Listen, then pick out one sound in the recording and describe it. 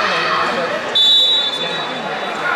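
A referee's whistle blows a short, sharp blast in a large echoing hall.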